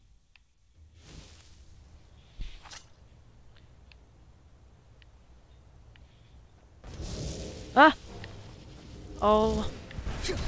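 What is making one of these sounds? Wind blows through a snowstorm.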